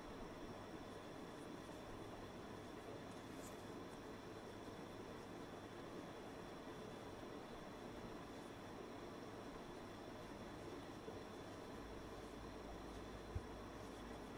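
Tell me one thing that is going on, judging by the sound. A crochet hook and yarn rustle softly while stitching.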